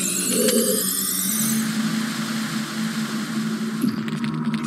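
A heavy block of ice scrapes along an icy floor.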